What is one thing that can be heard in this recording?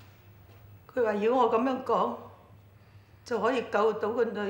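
A woman speaks emotionally, close by.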